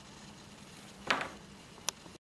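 A plastic tube knocks softly against equipment.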